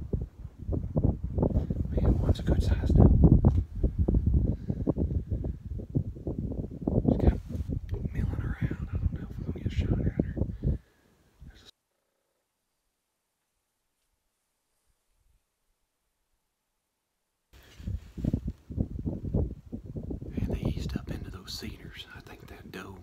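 A man whispers quietly close to a microphone.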